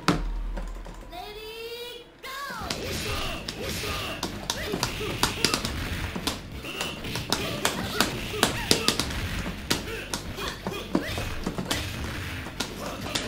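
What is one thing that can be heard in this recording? Fighting-game music plays throughout.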